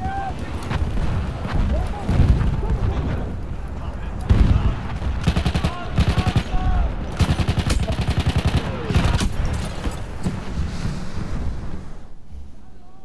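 Explosions boom heavily nearby.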